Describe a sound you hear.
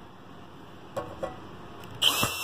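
A screwdriver turns a screw with a faint scrape.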